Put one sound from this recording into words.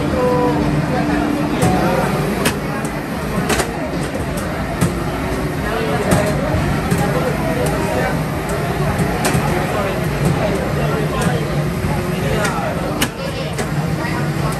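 Tyres screech from racing game loudspeakers.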